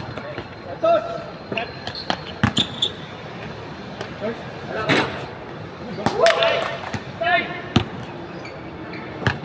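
Basketballs bounce on a hard outdoor court.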